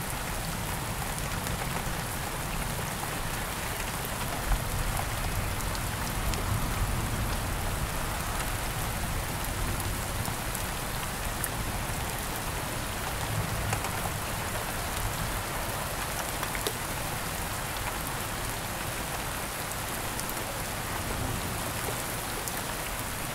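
Thunder rumbles low in the distance.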